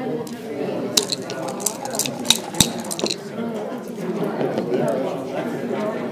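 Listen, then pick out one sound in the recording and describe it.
Dice rattle and clatter onto a board.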